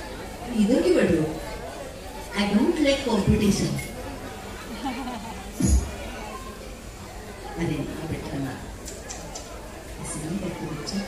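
A band plays along behind a singer.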